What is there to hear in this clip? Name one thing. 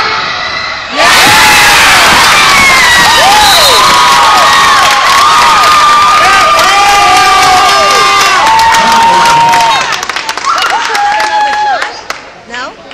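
Young women shout and scream with excitement.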